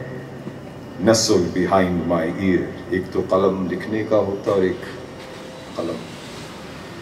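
An elderly man reads aloud calmly into a microphone.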